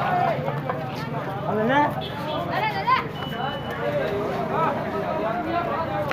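A bonfire crackles.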